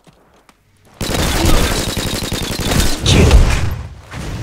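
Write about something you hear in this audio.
Rapid rifle gunfire rattles loudly.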